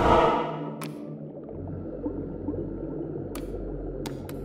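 A short electronic click sounds as a menu selection moves.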